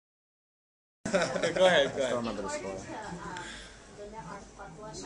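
Men laugh nearby.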